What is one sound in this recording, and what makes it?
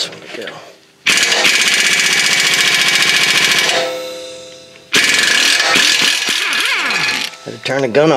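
A pneumatic air tool whirs loudly in short bursts.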